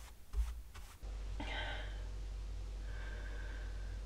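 A woman sips from a cup.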